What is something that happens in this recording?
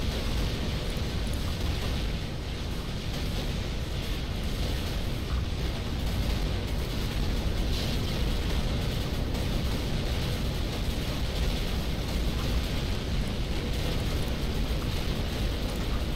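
Weapons fire and explosions rumble steadily in a game battle.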